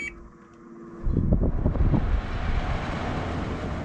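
An air conditioner fan starts up and blows with a steady whoosh.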